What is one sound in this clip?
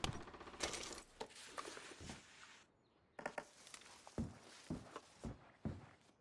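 Items rattle and knock as a wooden drawer is rummaged through.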